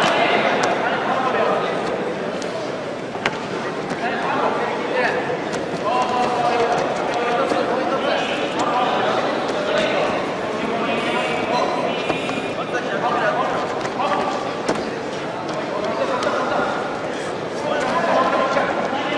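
Men shout encouragement in a large echoing hall.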